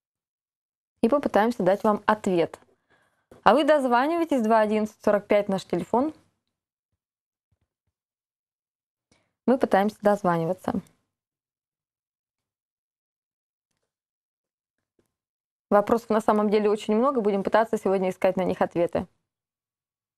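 A woman speaks clearly into a microphone in a calm, newsreader's voice, pausing between phrases.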